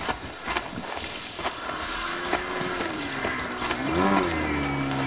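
Footsteps rustle through leafy plants.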